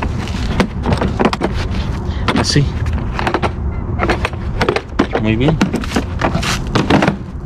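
Plastic tool case parts clatter and knock as they are handled.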